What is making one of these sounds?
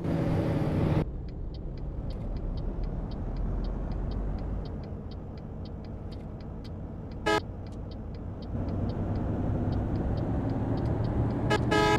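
A bus engine drones low and muffled from inside the cab.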